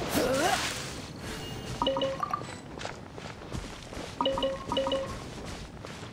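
Short chiming tones ring out.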